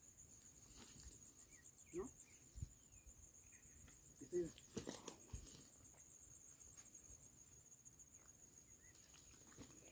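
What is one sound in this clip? Leafy plants rustle as a man pulls them up.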